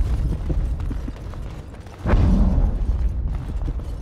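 Heavy armoured footsteps thud on stone.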